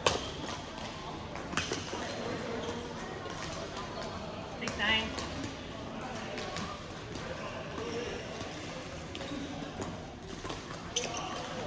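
Badminton rackets strike shuttlecocks with sharp pops in a large echoing hall.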